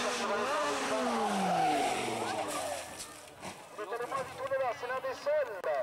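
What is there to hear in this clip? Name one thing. Tyres skid on loose dirt.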